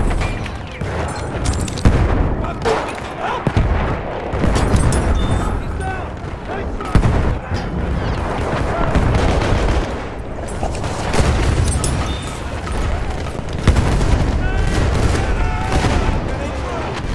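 Gunfire cracks and rattles in an echoing space.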